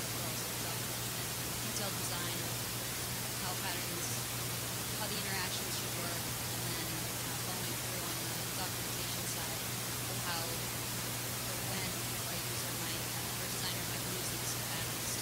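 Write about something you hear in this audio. A person speaks calmly through a microphone in a large room.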